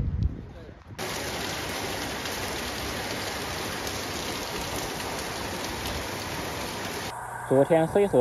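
Heavy rain pours and splashes on a wet street.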